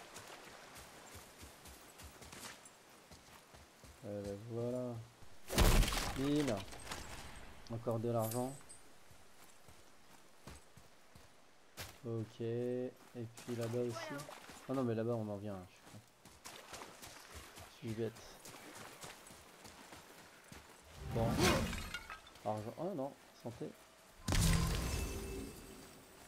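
Footsteps tread on grass and stone.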